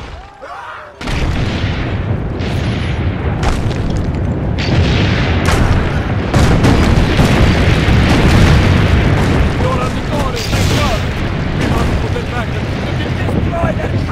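Cannon fire booms and rumbles steadily.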